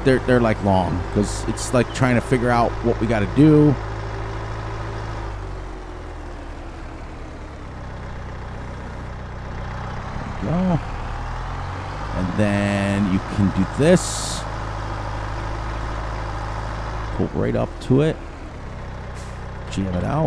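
A tractor engine hums and drones steadily.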